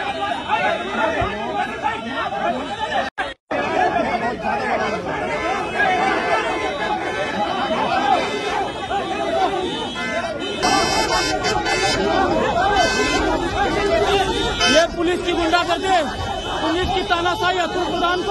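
Several men shout and argue heatedly outdoors.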